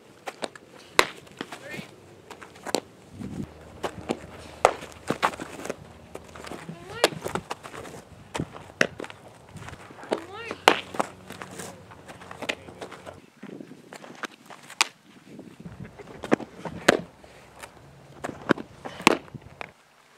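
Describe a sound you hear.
A softball smacks into a catcher's mitt again and again.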